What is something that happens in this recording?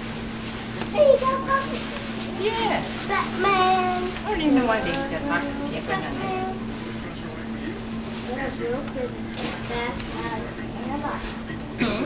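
A woman talks gently and playfully, close by.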